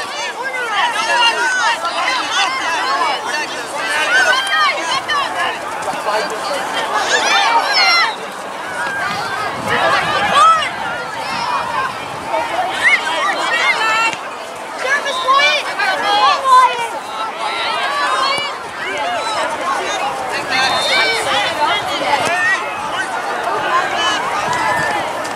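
A crowd of spectators shouts and calls out across an open field.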